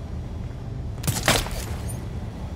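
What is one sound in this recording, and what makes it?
A sudden scraping thud sounds from someone climbing.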